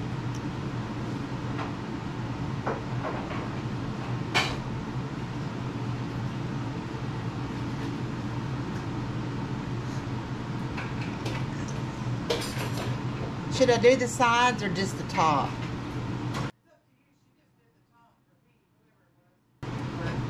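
A spatula scrapes softly as frosting is spread on a cake.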